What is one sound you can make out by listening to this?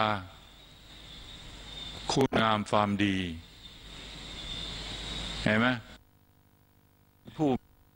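An elderly man speaks slowly and calmly through a microphone, in short phrases with pauses.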